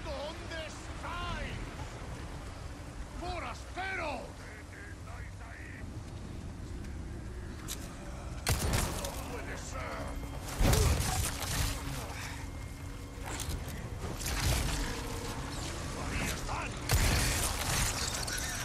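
Footsteps crunch on dirt and leaves.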